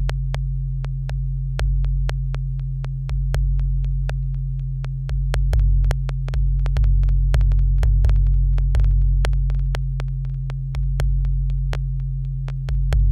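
A deep electronic bass drones and pulses steadily.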